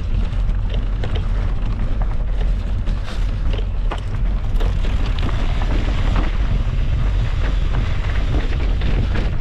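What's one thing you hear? Wind rumbles steadily across a close microphone.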